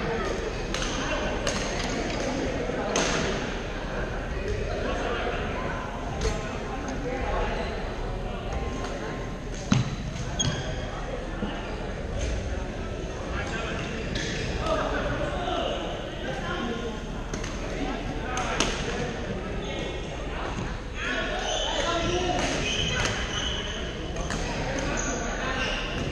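Shuttlecocks are struck with sharp racket pops across a large echoing gym.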